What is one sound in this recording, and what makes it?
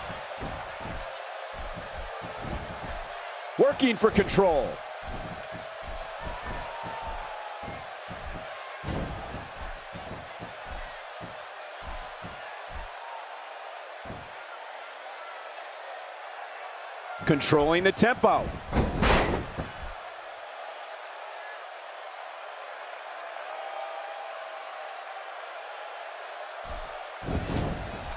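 A crowd cheers steadily in a large echoing arena.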